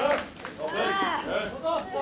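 A young woman shouts loudly.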